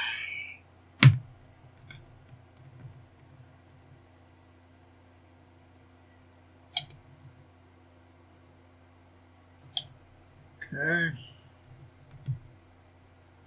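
Plastic model parts click and tap on a cutting mat.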